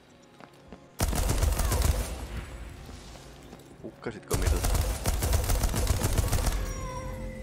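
A machine gun fires loud rapid bursts.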